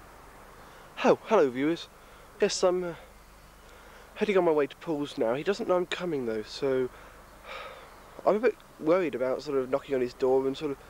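A young man speaks close to the microphone.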